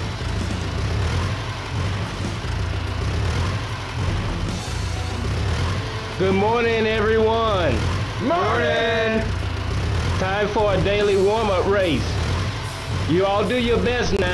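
Forklift engines idle with a low hum.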